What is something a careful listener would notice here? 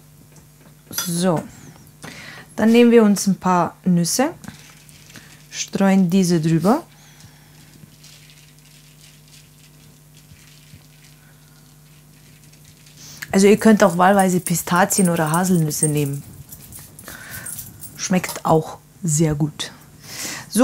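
A woman talks calmly into a close microphone.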